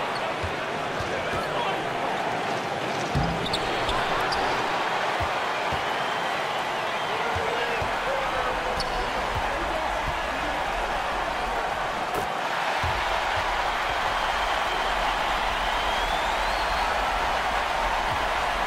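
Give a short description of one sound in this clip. A large crowd roars and cheers steadily in a big echoing arena.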